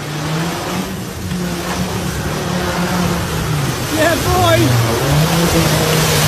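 Mud and water splash heavily around an off-road vehicle's wheels.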